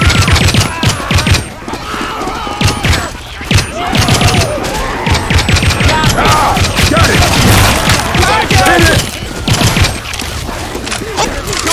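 A rifle fires in rapid bursts of loud gunshots.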